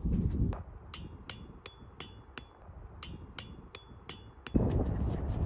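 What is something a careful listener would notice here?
A hammer taps metal pegs into the ground in a steady rhythm.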